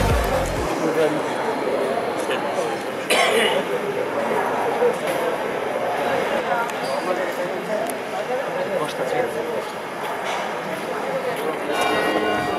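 A choir of men sings together in harmony outdoors.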